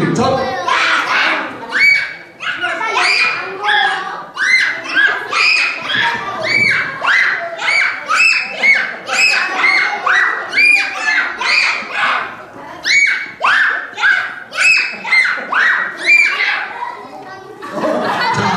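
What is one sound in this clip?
Children speak short words one after another through a microphone.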